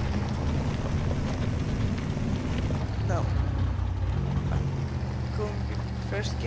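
Tyres crunch over rocks.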